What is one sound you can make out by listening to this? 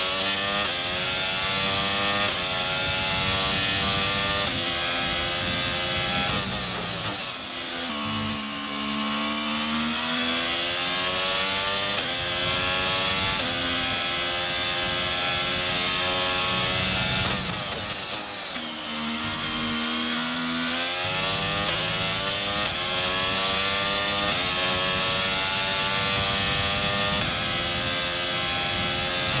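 A racing car engine screams at high revs, shifting gears and dropping in pitch when braking for corners.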